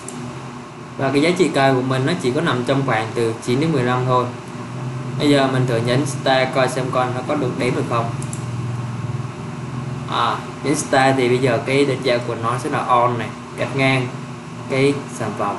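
A young man speaks calmly into a nearby microphone.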